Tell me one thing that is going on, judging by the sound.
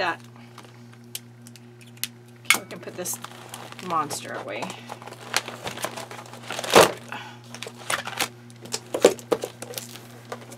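Plastic binder pages rustle and flip.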